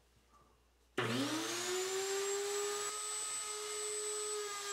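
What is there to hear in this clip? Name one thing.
A table-mounted router spins up and whines at speed.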